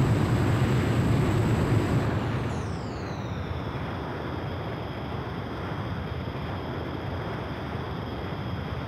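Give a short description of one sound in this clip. A jet engine roars steadily, its whine dropping in pitch.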